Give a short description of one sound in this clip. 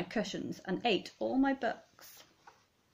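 A woman reads aloud close by with expression.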